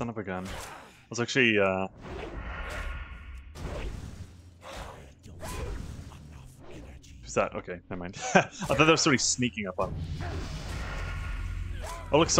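Blades strike in a fight with sharp hits.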